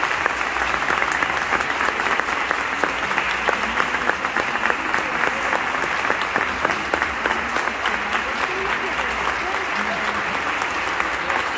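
The marimba music echoes in a large, reverberant hall.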